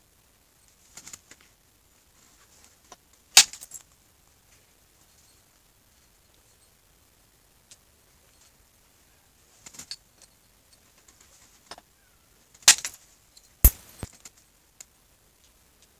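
Stone flakes chip off with sharp clicks and cracks.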